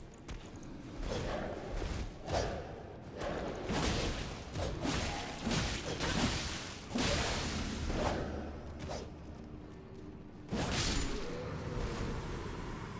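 Swords clash and slash in a fierce fight.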